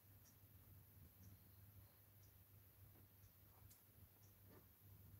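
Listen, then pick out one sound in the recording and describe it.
A small brush dabs softly on a vinyl surface.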